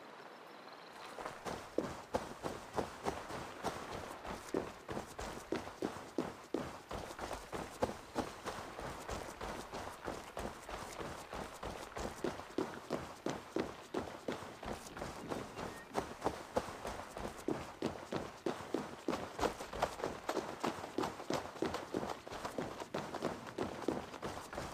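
Footsteps crunch quickly on dirt and stone steps.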